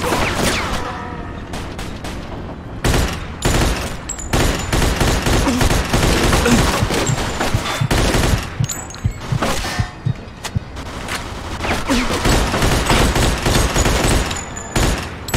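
A submachine gun fires rapid bursts of shots.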